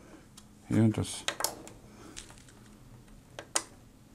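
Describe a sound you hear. A plastic switch on a power strip clicks as a finger presses it.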